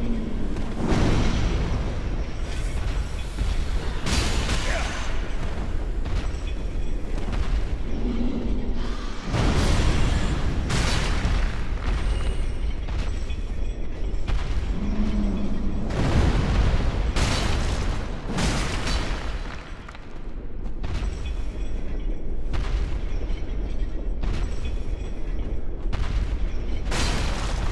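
Swords clash and strike in a fast fight.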